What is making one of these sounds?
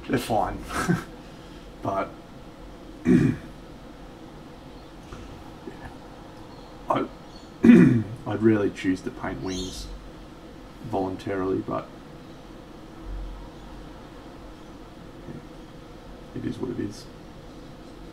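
A man talks casually into a nearby microphone, in short bursts.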